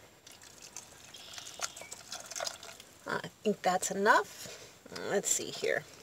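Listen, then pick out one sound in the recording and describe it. Liquid pours into a pot with a soft splashing.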